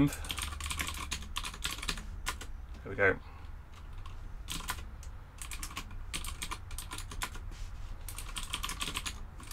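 Keys on a computer keyboard clatter in quick, uneven bursts.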